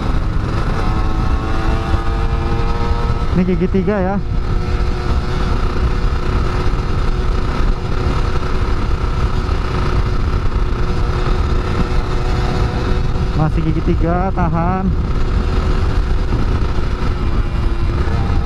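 An electric motor whines steadily while riding.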